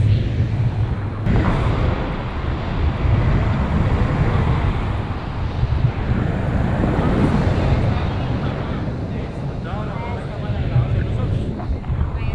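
Strong wind rushes and buffets loudly throughout.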